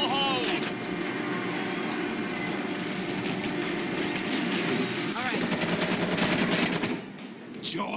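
Rifles fire in rapid bursts close by.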